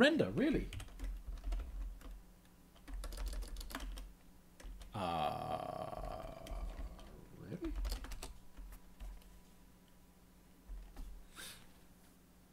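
A keyboard clatters with quick typing.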